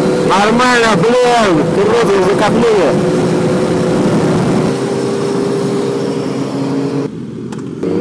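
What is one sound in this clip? Other motorcycle engines rumble nearby.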